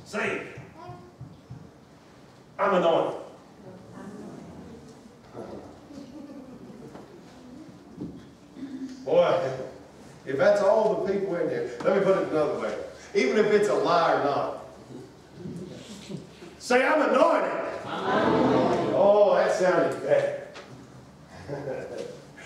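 A man preaches with animation in an echoing hall, his voice rising to loud exclamations.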